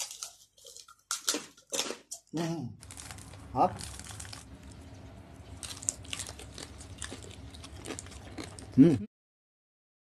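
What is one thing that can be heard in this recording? A man and a woman bite and chew crunchy food close by.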